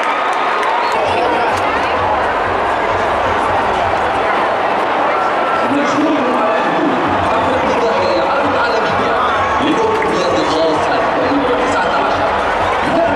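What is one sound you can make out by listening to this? A large crowd cheers and shouts steadily in a huge arena.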